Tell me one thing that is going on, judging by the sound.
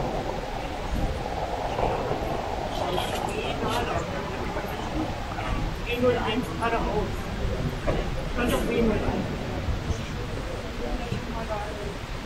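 A rolling suitcase's wheels rumble across a hard floor.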